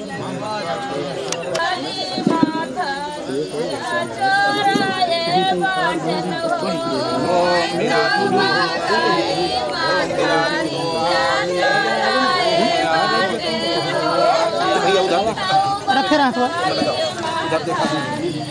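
An elderly man chants steadily, close by.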